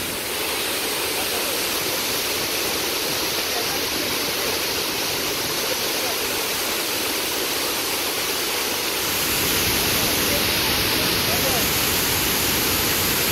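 Waterfalls roar steadily, pouring into a pool.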